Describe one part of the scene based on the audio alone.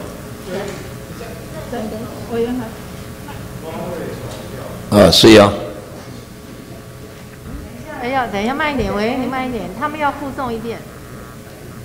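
A man speaks over a loudspeaker in a large echoing hall.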